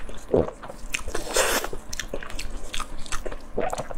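Sticky meat tears apart with a wet sound.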